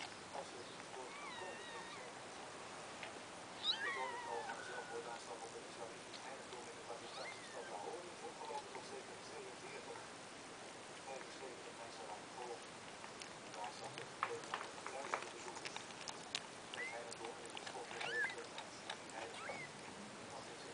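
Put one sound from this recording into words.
Newborn kittens mew in thin, high squeaks.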